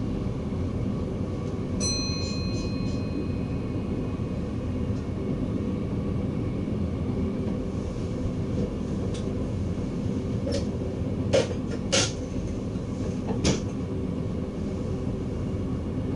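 A train rumbles steadily along the tracks, heard from inside the cab.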